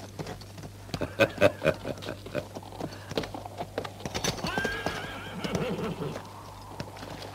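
A man speaks in a gruff voice nearby.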